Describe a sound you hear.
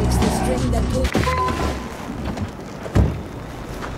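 A car engine hums as the car drives along.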